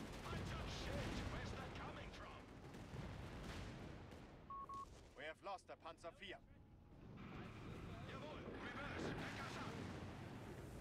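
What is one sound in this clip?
Tank engines rumble and clank.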